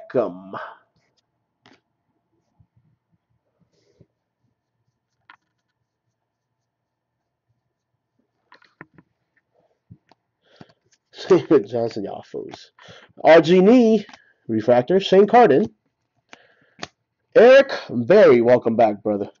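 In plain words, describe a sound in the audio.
Trading cards rustle and slide softly against each other in hands.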